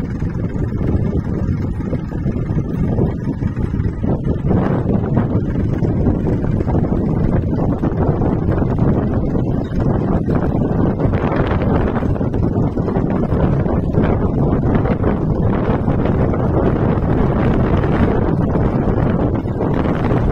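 A tractor engine idles nearby with a steady low rumble.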